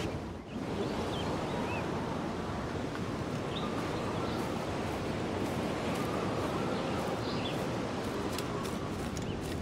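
Footsteps rustle through low grass and leaves.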